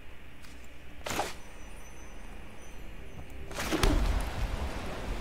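Soft whooshing game effects sound as cards are played.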